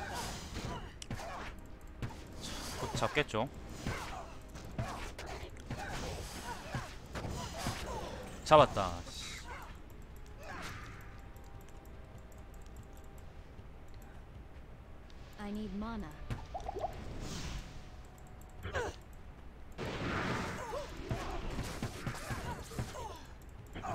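Blades clash and strike in a fast fight.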